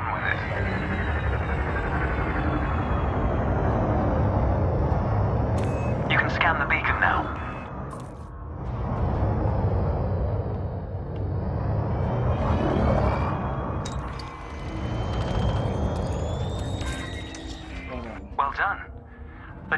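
A spaceship engine hums and rumbles low and steadily.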